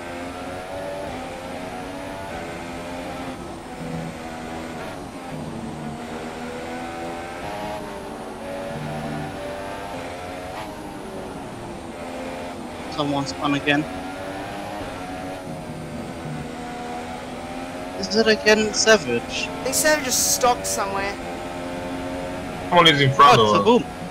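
A racing car engine whines loudly, rising in pitch and dropping as it shifts gears.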